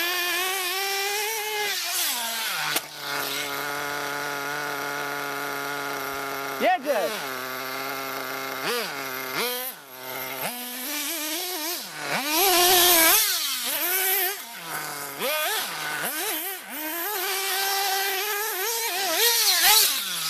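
Tyres of a model car skid and crunch on dirt.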